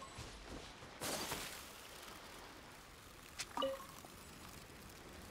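A soft magical whoosh rushes past as a figure dashes.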